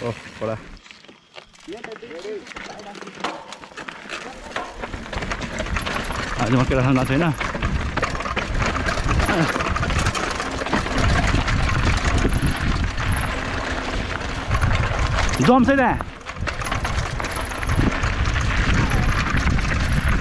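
Bicycle tyres rattle and crunch over a rocky dirt trail.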